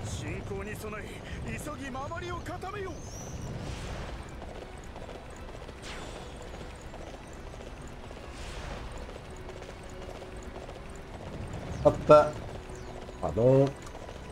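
A horse gallops with its hooves thudding on the ground.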